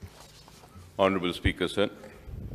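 A middle-aged man speaks briefly into a microphone.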